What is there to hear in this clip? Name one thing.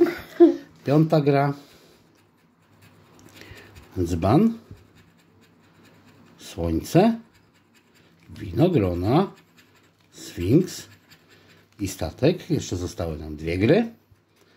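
A metal tool scrapes and scratches at a card.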